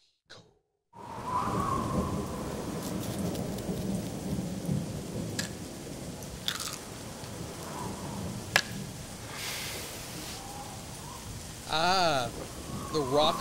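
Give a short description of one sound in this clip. A rock song with guitar and piano plays at a moderate level.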